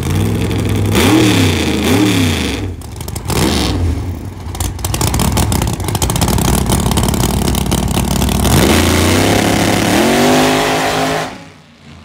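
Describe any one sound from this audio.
A drag racing engine roars loudly and revs up and down.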